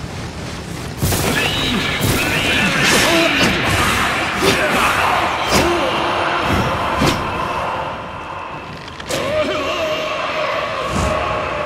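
Blades clash and swish in a fierce fight.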